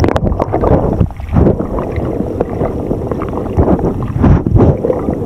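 Water churns and bubbles roar loudly underwater.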